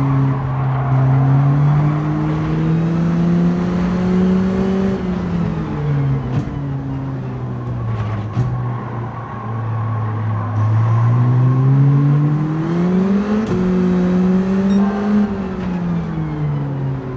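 A racing car engine drones loudly, rising and falling in pitch as it speeds up, brakes and shifts gears.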